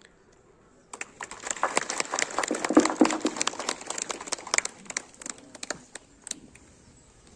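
A crowd claps their hands outdoors.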